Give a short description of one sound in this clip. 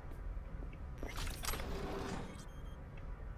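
A wooden crate is pried open with a rattle.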